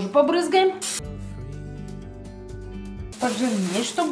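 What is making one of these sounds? A spray can hisses.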